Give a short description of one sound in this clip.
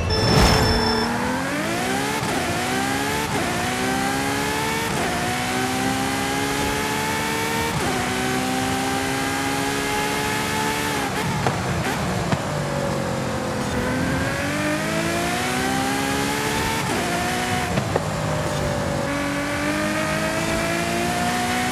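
A sports car engine roars as it accelerates, rising in pitch through gear changes.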